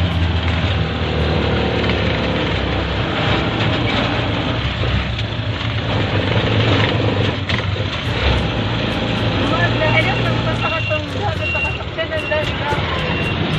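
A small motorcycle engine hums steadily while riding.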